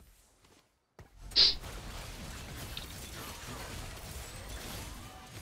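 Fighting sound effects clash and whoosh from a video game.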